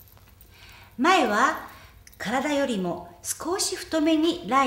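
A young woman speaks calmly, as if instructing.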